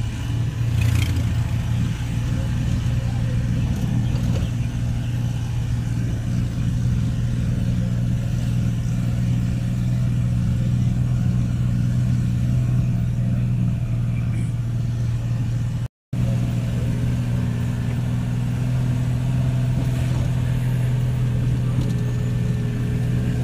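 A vehicle engine hums steadily and low from inside the cab.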